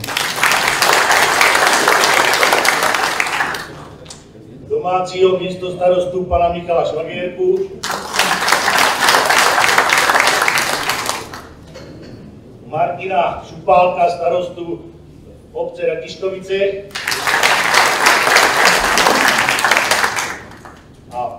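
An audience claps and applauds in bursts.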